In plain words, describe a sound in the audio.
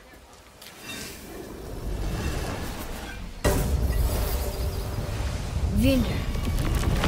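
A heavy stone block grinds and rumbles as it slides into place.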